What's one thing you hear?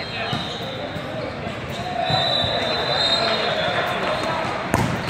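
Players' shoes squeak on a hard court in a large echoing hall.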